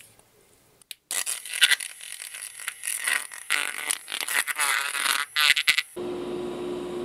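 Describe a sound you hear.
Liquid drips and trickles into a plastic cup.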